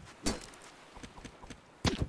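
A wooden crate smashes apart under a heavy club blow.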